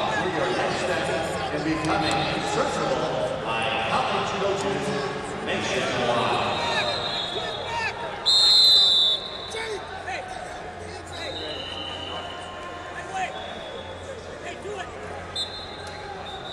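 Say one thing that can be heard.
A crowd chatters and shouts in a large echoing hall.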